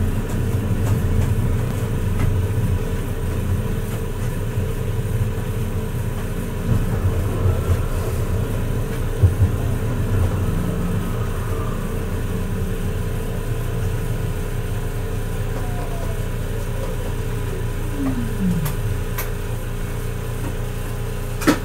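A tram hums and rumbles steadily along its rails.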